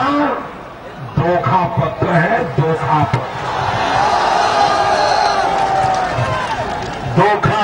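A middle-aged man speaks forcefully into a microphone through loudspeakers.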